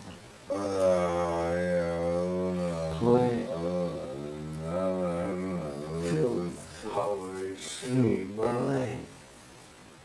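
A young man sings drowsily in a drawn-out, slurred voice close by.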